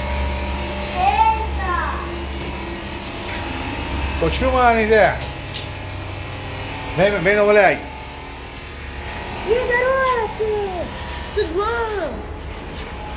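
Dogs whine and yelp in short bursts close by.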